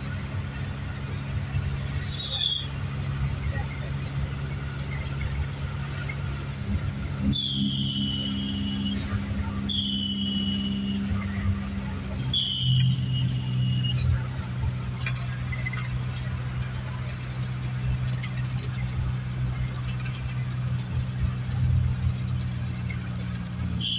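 A vehicle engine hums steadily from inside the cabin.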